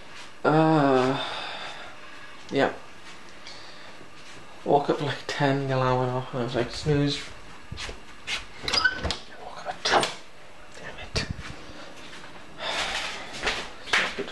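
A young man speaks close by with animation, in short bursts.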